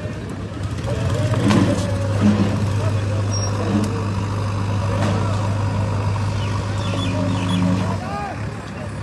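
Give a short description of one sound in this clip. A heavy machine's engine rumbles steadily nearby.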